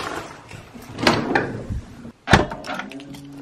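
A door handle clicks and rattles.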